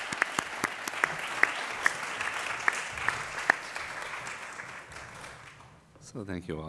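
An audience applauds and then dies down.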